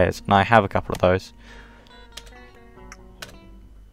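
A portable CD player's lid clicks open.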